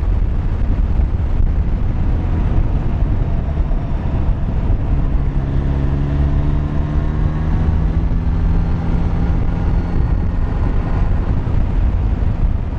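Wind rumbles and buffets loudly.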